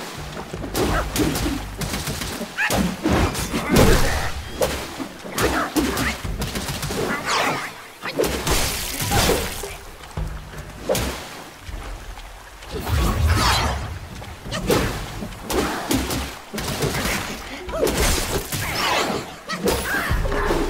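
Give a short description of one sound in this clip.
Staffs strike and clash with sharp, heavy blows.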